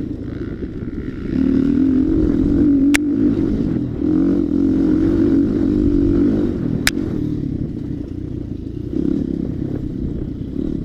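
A dirt bike engine revs and roars up close, rising and falling.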